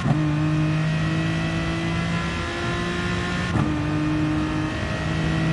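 A racing car engine drones at high revs.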